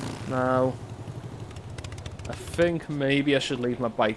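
A motorcycle engine idles and rumbles.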